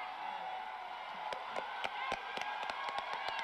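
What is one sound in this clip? A crowd of people claps their hands.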